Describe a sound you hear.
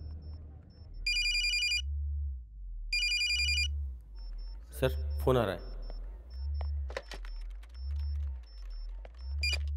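A phone rings in short repeated bursts.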